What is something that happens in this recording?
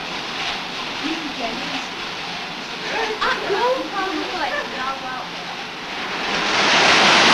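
Young girls talk with animation close by.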